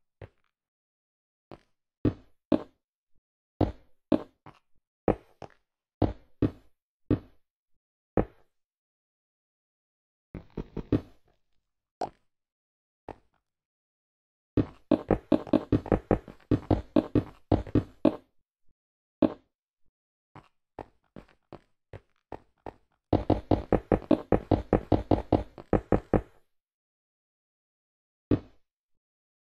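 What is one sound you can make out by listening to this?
Blocks are set down with short, dull knocks.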